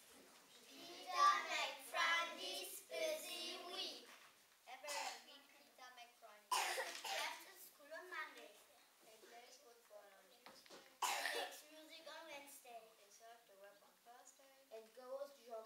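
A group of children sing together.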